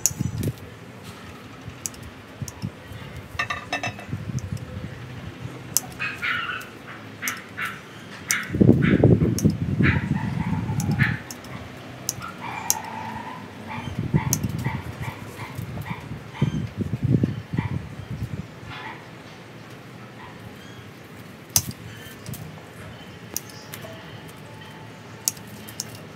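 Pruning shears snip through small twigs with sharp clicks.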